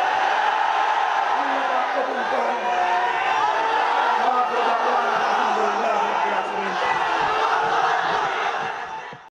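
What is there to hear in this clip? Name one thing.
A large crowd of men chants and shouts together loudly.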